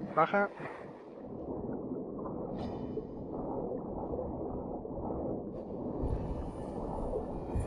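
Water swirls and rumbles with a muffled, underwater sound.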